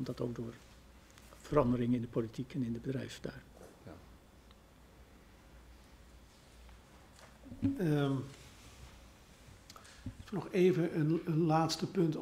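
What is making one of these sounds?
An older man speaks calmly into a microphone, with pauses.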